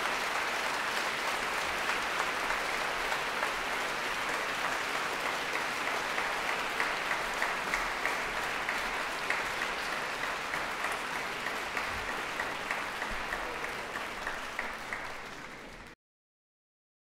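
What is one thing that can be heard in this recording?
A large audience applauds steadily in a big echoing hall, fading out at the end.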